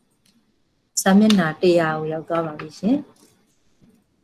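A woman speaks calmly into a microphone over an online call.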